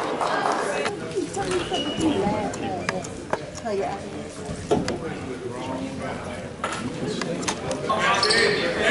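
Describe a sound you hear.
Young men talk together in a team huddle.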